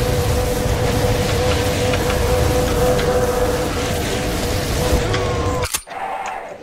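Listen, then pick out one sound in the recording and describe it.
A flamethrower roars with a steady rushing blast.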